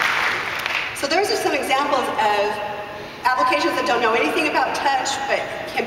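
A woman speaks with animation through a microphone in a large hall.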